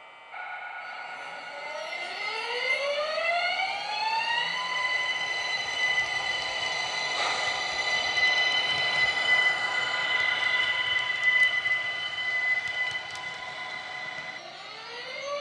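Train wheels rumble and click over the rails.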